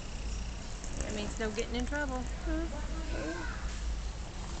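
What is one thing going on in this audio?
A young girl speaks close by, in a high, lively voice.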